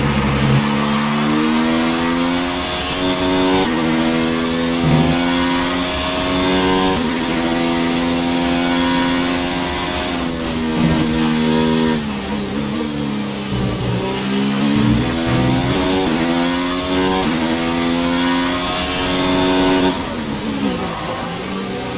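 A racing car engine screams at high revs, climbing in pitch and dropping sharply with each gear change.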